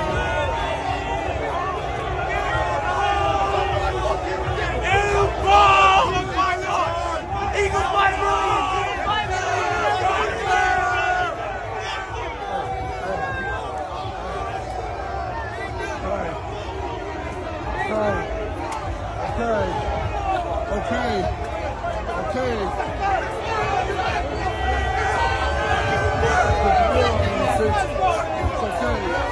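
A crowd of young men chants and shouts loudly outdoors.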